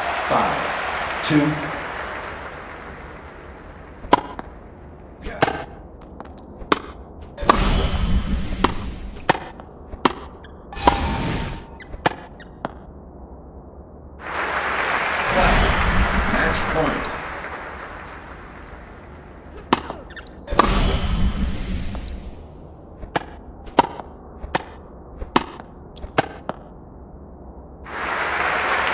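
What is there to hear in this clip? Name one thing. A crowd cheers and applauds in bursts.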